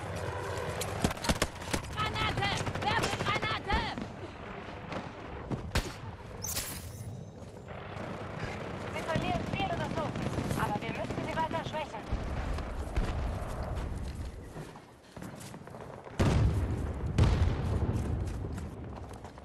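Rapid gunfire crackles in bursts nearby.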